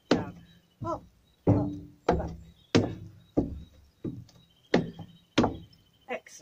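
Boots stamp rhythmically on a hollow metal deck, each thud ringing briefly.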